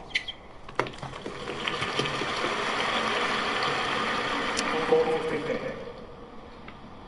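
A crowd applauds and cheers loudly, then fades.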